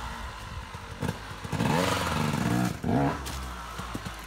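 A second dirt bike engine revs up and down in bursts.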